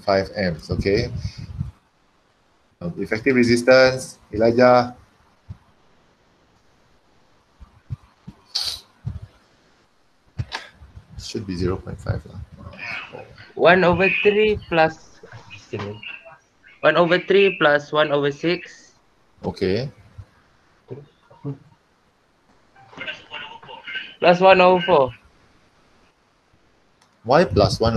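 A man explains calmly through a microphone on an online call, with pauses.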